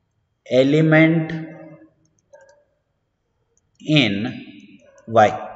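A man explains calmly, close to a microphone.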